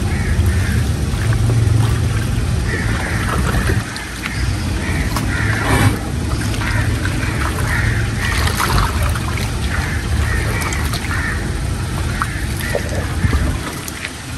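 Hands stir and rustle through damp grain in a tub.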